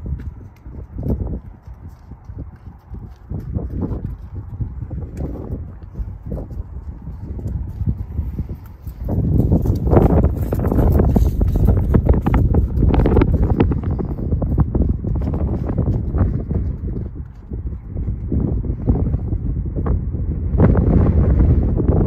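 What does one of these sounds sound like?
Horse hooves thud on soft ground.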